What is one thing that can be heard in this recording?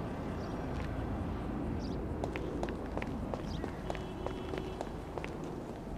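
Footsteps walk on pavement outdoors.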